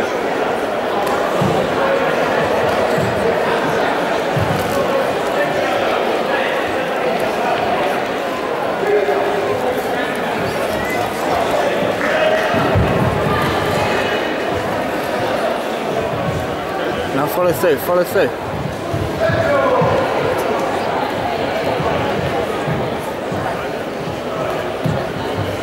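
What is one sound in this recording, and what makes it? Bare feet thud and slap on a wooden floor.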